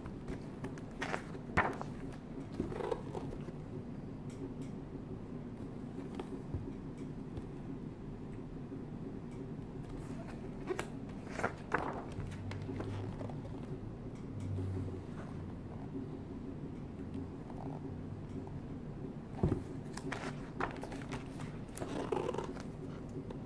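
Stiff book pages rustle and flip as they are turned.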